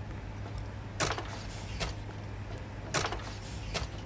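Ammunition is picked up with short metallic clicks.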